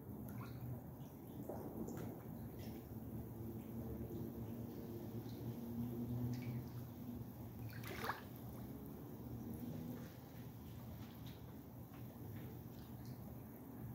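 Water ripples and laps gently as small ducks paddle about.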